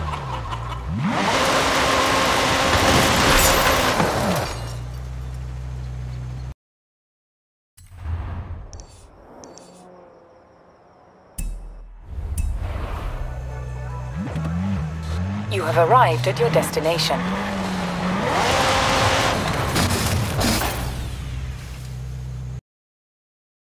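A sports car engine roars and revs hard.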